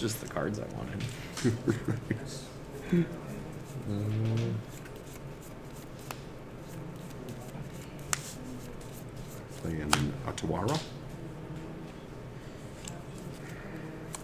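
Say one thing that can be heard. Playing cards riffle and rustle as they are shuffled.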